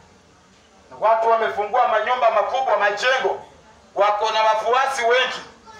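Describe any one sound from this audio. A man speaks loudly through a megaphone, outdoors.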